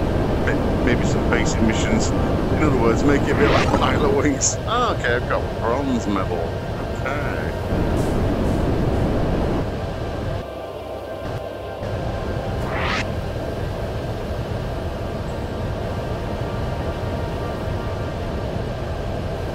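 A low engine drones steadily.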